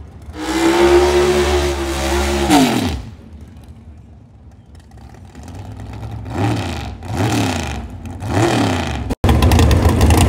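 A race car engine roars and revs hard, rising and falling.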